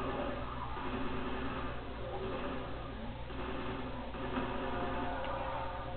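Gunshots from a video game fire through a television speaker.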